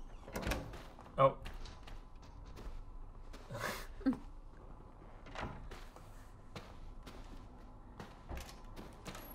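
A young man talks into a microphone in short bursts.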